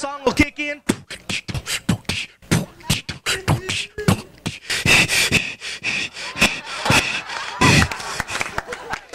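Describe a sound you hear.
A young man makes quick vocal sound effects into a microphone.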